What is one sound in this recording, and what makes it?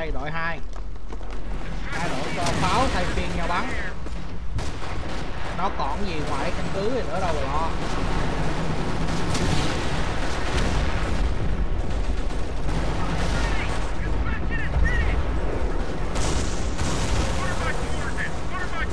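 Gunfire and explosions rumble in a battle.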